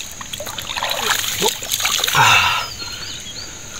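Water splashes and pours into a bucket.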